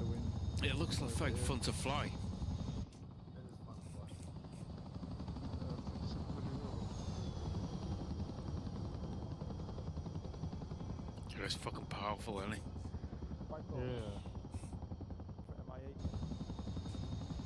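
A helicopter's rotors thump steadily as it flies low.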